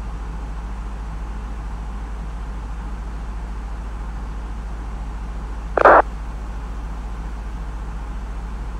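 Jet engines hum steadily from inside a cockpit.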